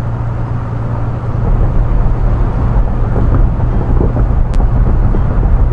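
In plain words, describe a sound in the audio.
Tyres roll on a highway with a low rumble.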